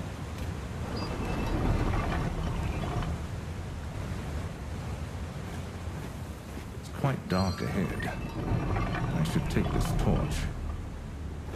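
A young man talks nearby in short bursts.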